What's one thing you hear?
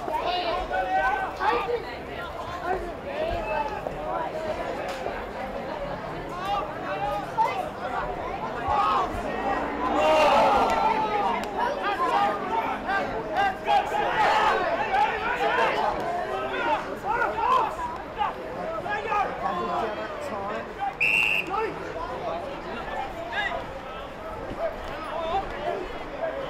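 Men shout and call out to one another across a field outdoors.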